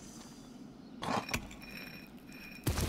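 A metal disc clicks into place in stone.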